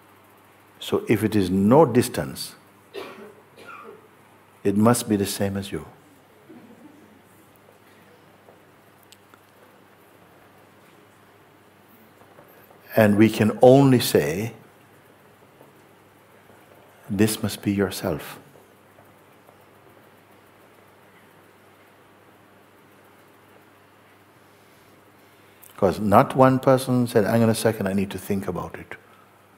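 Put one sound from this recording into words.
An elderly man speaks calmly and thoughtfully, close to a microphone, with long pauses.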